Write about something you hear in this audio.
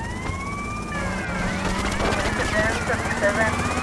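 A car engine revs.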